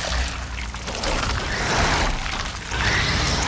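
A large creature snarls and shrieks.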